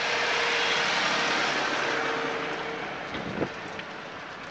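A tractor engine runs nearby, then fades.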